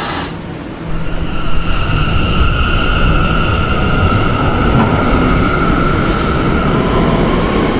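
A train rumbles along the track.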